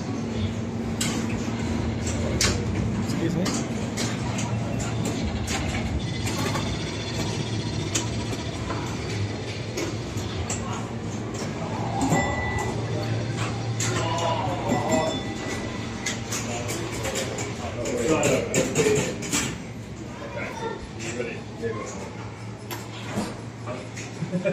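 Pinball machines click, clack and ring throughout.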